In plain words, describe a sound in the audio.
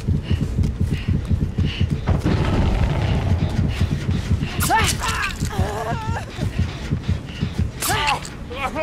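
Heavy footsteps thud quickly and steadily.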